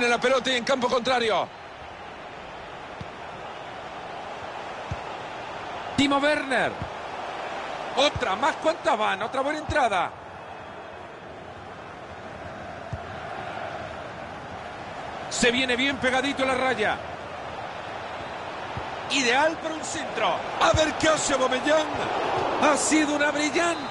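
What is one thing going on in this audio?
A large stadium crowd murmurs and cheers steadily in the background.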